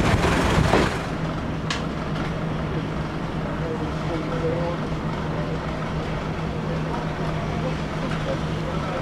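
A train's engine hums steadily.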